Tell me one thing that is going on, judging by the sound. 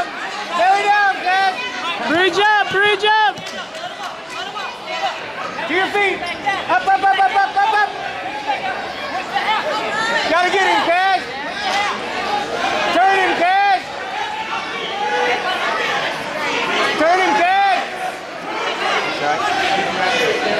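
A crowd of spectators cheers and yells.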